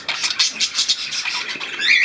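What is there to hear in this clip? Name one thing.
A bird splashes and flutters its wings in shallow water.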